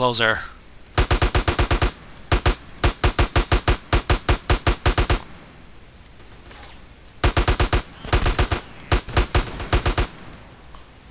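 Rapid automatic gunfire rings out in quick bursts.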